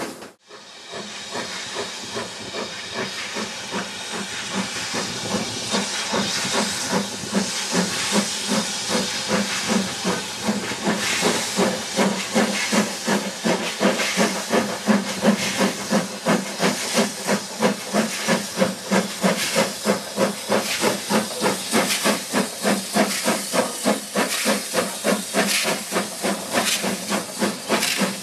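A steam locomotive chuffs rhythmically, growing louder as it approaches.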